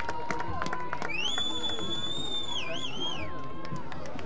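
A referee's whistle blows in a long shrill blast.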